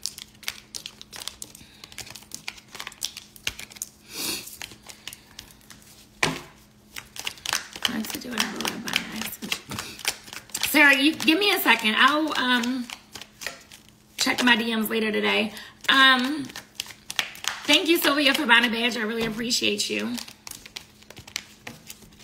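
Cards and packaging rustle in a young woman's hands.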